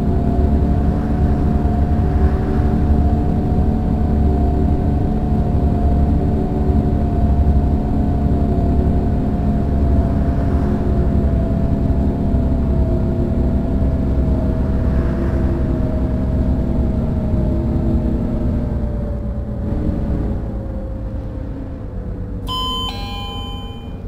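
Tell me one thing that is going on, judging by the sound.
A bus engine drones steadily and its pitch slowly falls toward the end.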